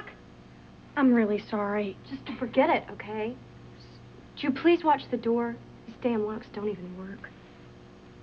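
A second young woman answers calmly, close by.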